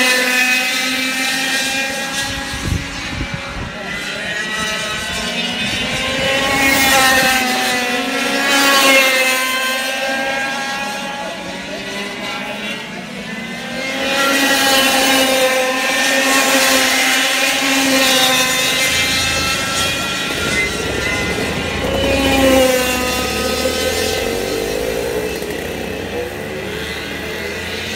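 Go-kart engines whine and rev loudly as karts race past outdoors.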